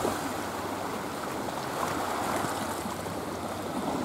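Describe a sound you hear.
Small waves wash gently against rocks.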